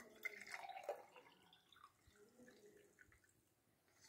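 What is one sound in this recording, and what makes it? Liquid pours from a pot through a mesh strainer into a glass.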